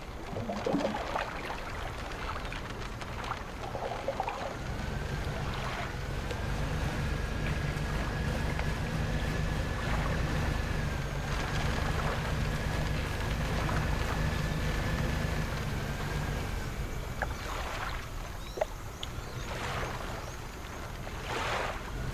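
Water splashes and laps against a moving boat's hull.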